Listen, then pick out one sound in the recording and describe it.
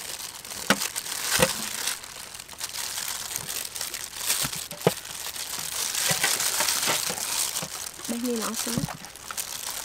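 Dragon fruit skin is peeled off by hand.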